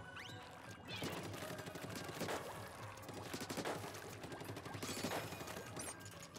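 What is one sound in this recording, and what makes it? Ink shots splatter in quick wet bursts.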